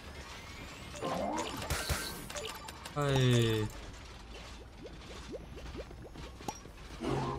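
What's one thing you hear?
Video game sound effects click and chirp in quick bursts.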